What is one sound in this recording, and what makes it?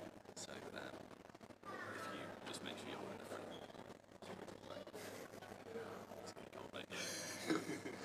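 Men talk quietly.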